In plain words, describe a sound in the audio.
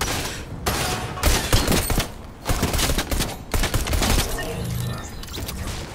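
Shotgun blasts go off in quick bursts.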